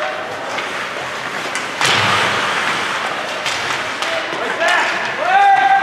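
Skates scrape and hiss across the ice in an echoing rink.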